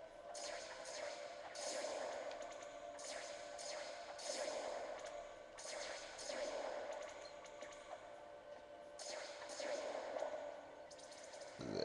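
Video game sword strikes whoosh and hit in quick bursts.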